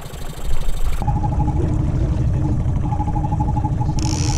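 A boat's outboard motor drones steadily as the boat moves.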